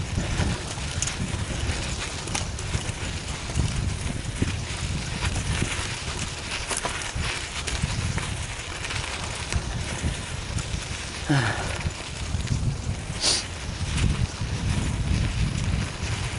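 Wind rumbles against a microphone outdoors.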